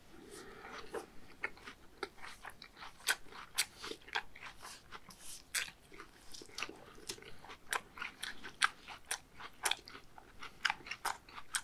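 A man chews food wetly with his mouth full, close to a microphone.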